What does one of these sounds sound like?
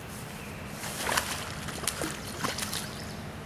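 A fish splashes and thrashes at the water's surface close by.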